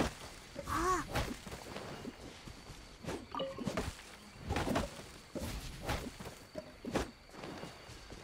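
A blade swishes and chops into wood with sharp thwacks.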